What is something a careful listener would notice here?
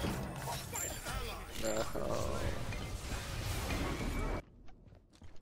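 Magic blasts burst and whoosh in a fight.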